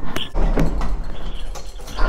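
A lift button clicks.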